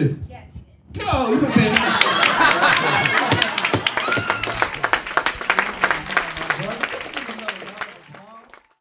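A small group of people laughs loudly.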